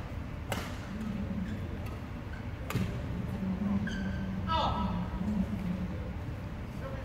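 Players call out across the echoing hall.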